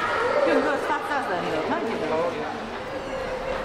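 Visitors talk quietly in a large echoing hall.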